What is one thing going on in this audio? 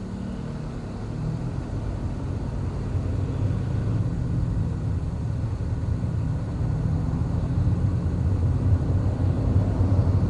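A car engine hums steadily from inside the cabin, rising slowly as the car speeds up.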